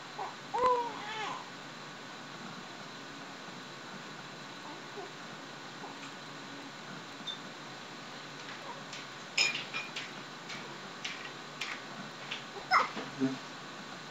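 Baby clothes rustle as a baby waves its arms.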